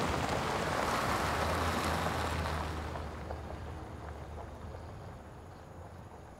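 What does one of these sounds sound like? A car engine hums as the car drives slowly over dirt.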